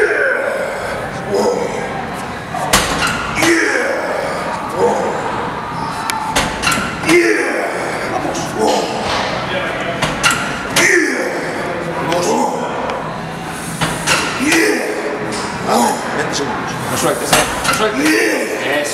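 A weight machine clanks as it is pushed.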